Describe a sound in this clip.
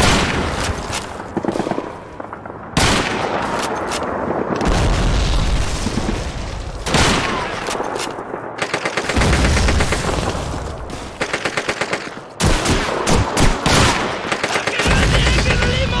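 Gunshots crack in quick bursts, close by.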